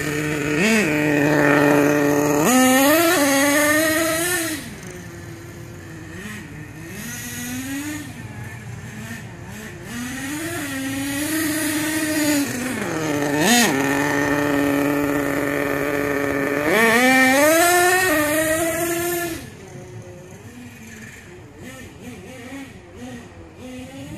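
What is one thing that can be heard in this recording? A remote-control car's electric motor whines loudly, rising and falling in pitch as it speeds past.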